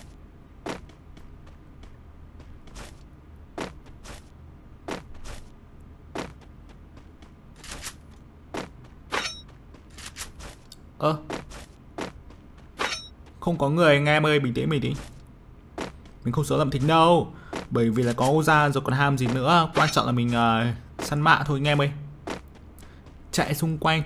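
Footsteps patter steadily on grass.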